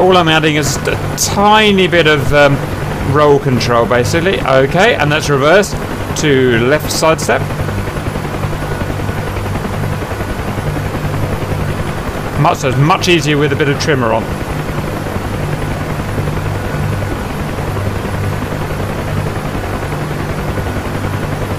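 A helicopter engine and rotor drone steadily nearby.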